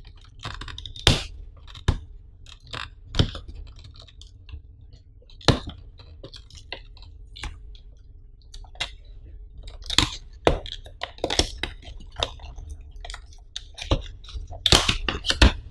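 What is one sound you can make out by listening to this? Hands tap and peel at a plastic film on a cardboard box.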